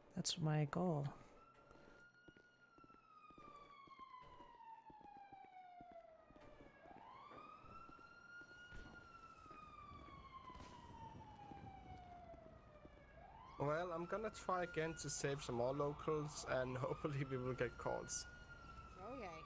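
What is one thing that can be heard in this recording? A siren wails, rising and falling slowly.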